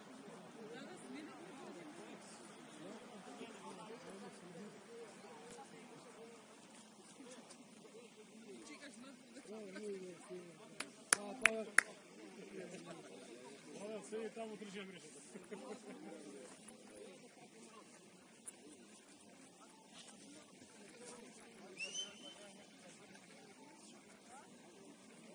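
Young men call out to each other across an open field.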